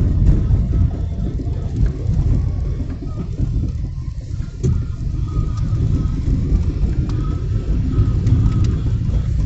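Tyres rumble low on the road.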